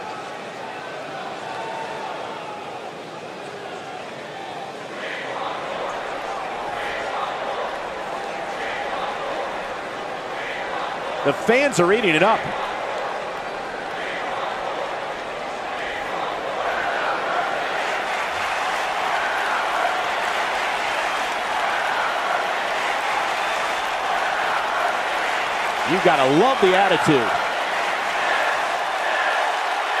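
A large crowd murmurs and cheers in a big echoing arena.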